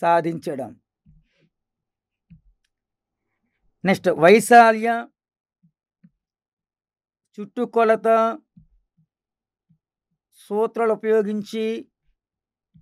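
A middle-aged man speaks slowly and calmly into a close microphone, with long pauses.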